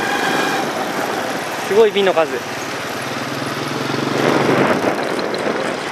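A motorbike engine hums close by as it rides along.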